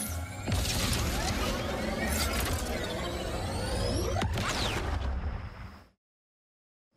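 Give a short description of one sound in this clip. A spaceship engine roars with a deep rumble.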